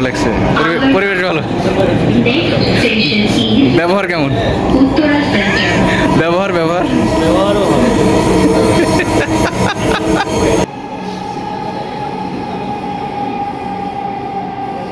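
A train hums and rumbles steadily.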